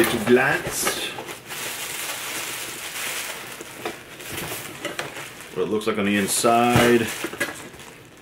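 Cardboard flaps rustle and scrape.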